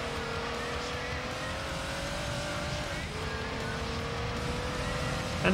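A racing car engine hums steadily, rising in pitch, then drops briefly as it shifts gear and climbs again.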